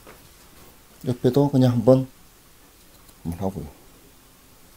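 A man speaks briefly and calmly nearby.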